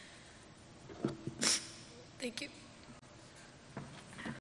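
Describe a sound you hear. A young woman speaks softly and haltingly into a microphone.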